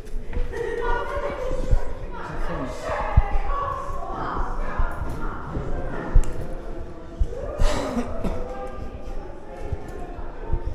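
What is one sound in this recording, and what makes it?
Footsteps scuff and thud on stone steps in an echoing passage.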